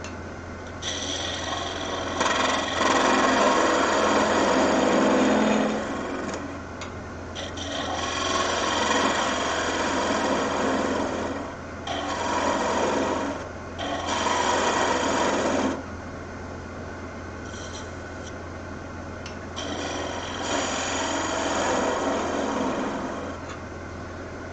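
A chisel scrapes and hisses against spinning wood in bursts.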